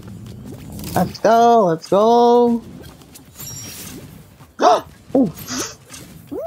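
Playful cartoon sound effects pop and whoosh.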